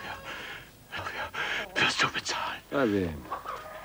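A man speaks in a calm, low voice.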